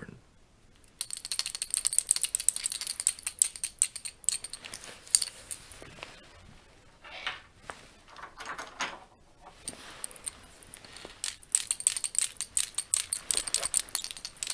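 Fingers and rings rub and click close to a microphone.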